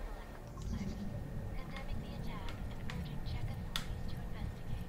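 Short electronic blips sound now and then.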